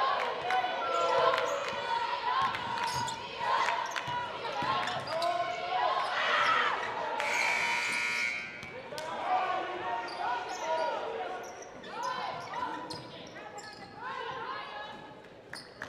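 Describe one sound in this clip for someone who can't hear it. Young women shout to each other during play.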